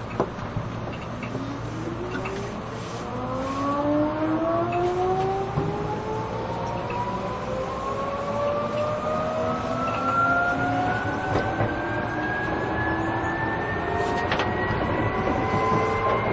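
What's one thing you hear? An electric train's motor whines, rising steadily in pitch as the train pulls away.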